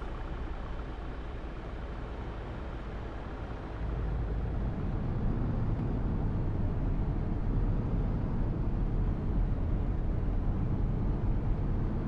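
A bus engine rumbles low and grows louder as the bus speeds up.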